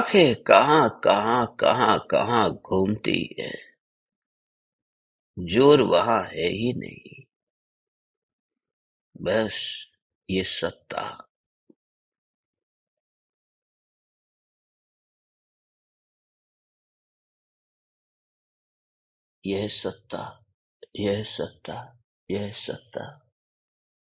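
A middle-aged man speaks softly and slowly into a close microphone, with long pauses.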